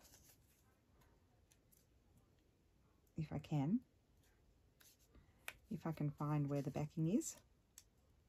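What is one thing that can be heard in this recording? Paper rustles softly between fingers.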